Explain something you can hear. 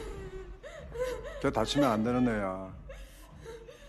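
A young man speaks firmly.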